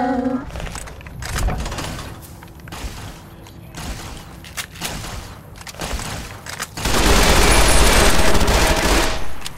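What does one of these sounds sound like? A rifle fires repeated sharp shots.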